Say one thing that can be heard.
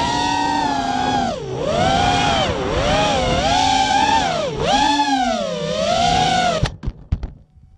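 A small drone's motors whine loudly, rising and falling in pitch.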